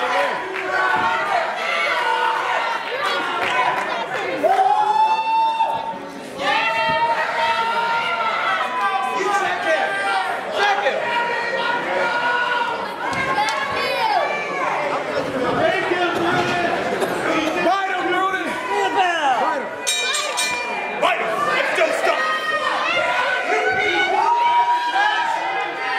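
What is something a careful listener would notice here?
A crowd chants and cheers loudly in an echoing hall.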